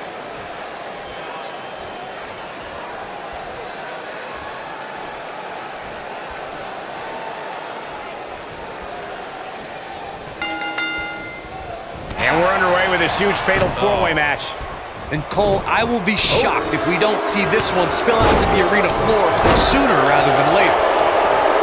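A large crowd murmurs and cheers steadily in an echoing arena.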